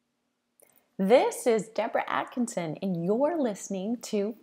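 A middle-aged woman speaks with animation, close to a microphone.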